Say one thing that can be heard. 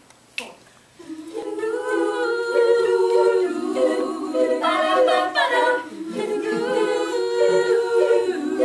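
A choir of young women sings together in harmony.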